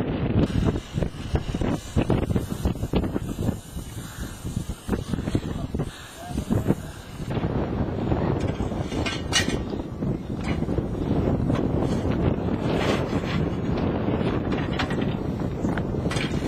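A small steam locomotive chuffs as it pulls slowly along the track.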